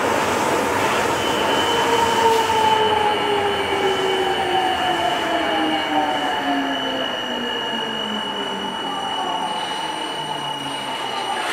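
A subway train's motors whine, falling in pitch as it slows.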